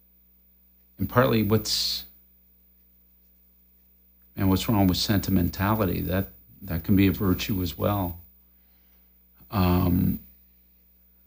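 A middle-aged man speaks calmly and thoughtfully into a close microphone, pausing between phrases.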